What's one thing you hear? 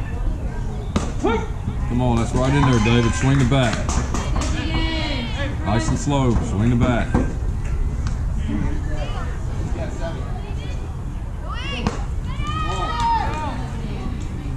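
Young voices shout and cheer from a distance.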